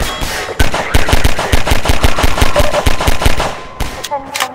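A pistol fires a rapid string of loud shots.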